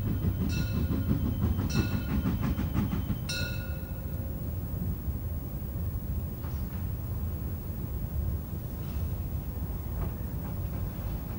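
A steam locomotive chuffs and rumbles as it pulls slowly in.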